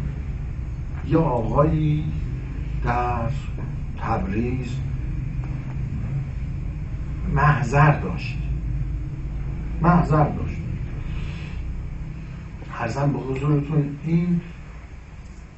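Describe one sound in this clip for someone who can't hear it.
An elderly man speaks with animation into a microphone, in short bursts with pauses.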